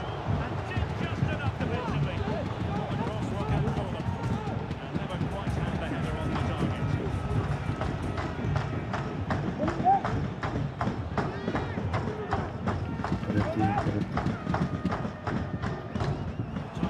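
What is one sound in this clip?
A stadium crowd roars and chants steadily.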